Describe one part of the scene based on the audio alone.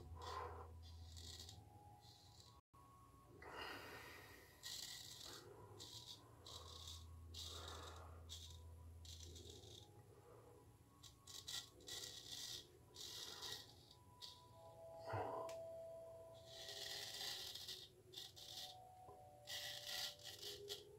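A razor scrapes through stubble in short, rasping strokes, close by.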